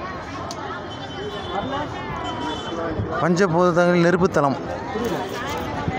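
A crowd of people chatters all around.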